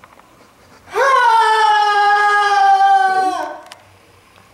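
A young man sings a long note that slowly falls in pitch.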